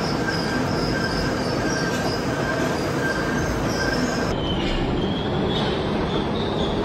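A gear-cutting machine runs, its cutter grinding through steel.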